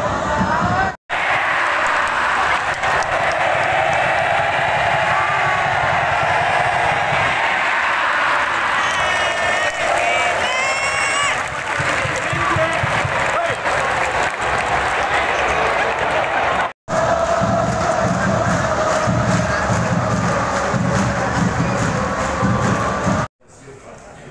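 A large stadium crowd chants and roars loudly.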